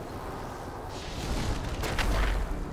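A magical whirlwind whooshes and roars loudly.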